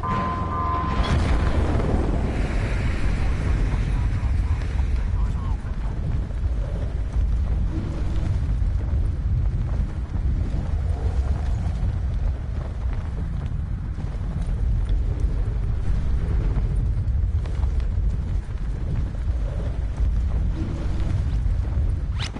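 Wind rushes loudly during a freefall.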